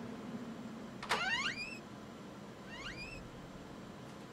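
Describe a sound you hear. Heavy wooden doors creak slowly open.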